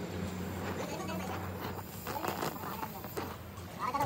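A gas torch hisses and crackles.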